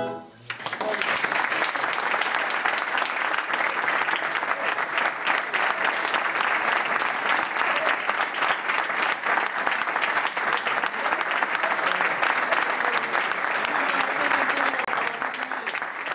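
An audience applauds loudly in a room.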